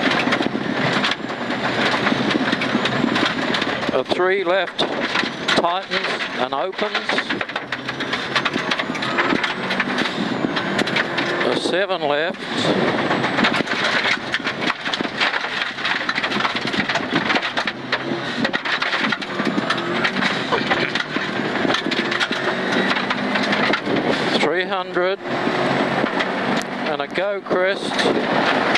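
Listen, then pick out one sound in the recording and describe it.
Gravel rattles against the underside of a car.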